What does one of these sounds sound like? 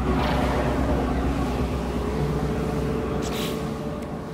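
A spaceship engine hums with a deep, steady rumble.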